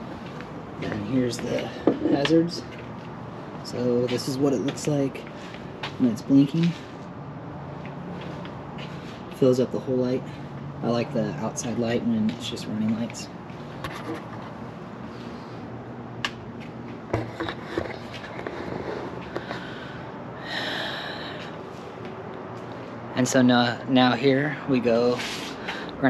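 A man talks calmly, close to the microphone.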